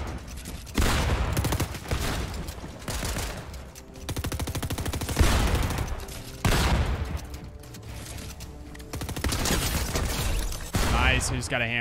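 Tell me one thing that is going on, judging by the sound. Video game gunshots and building noises crackle loudly in bursts.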